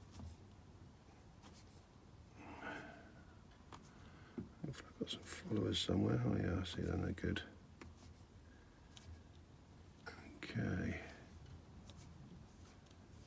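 Small metal picks click and scrape inside a lock.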